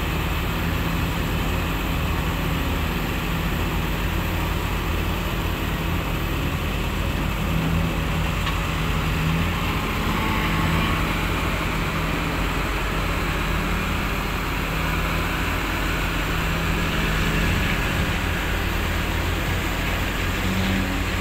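A diesel hydraulic excavator engine rumbles under load.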